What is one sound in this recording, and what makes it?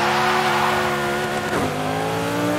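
Tyres screech as a car drifts.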